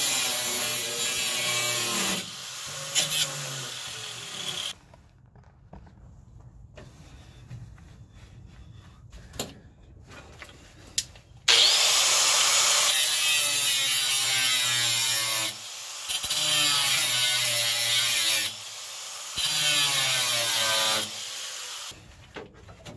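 An angle grinder whines as it cuts into metal.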